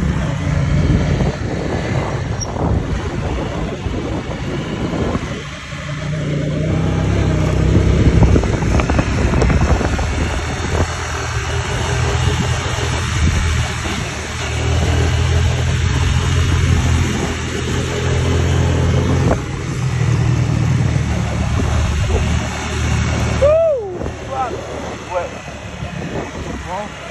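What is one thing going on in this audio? A motorcycle engine drones steadily nearby.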